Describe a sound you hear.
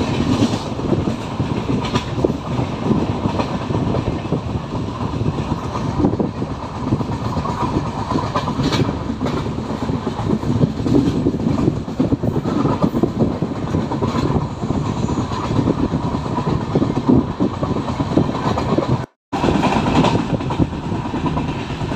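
A train rumbles steadily along the tracks, heard from an open window.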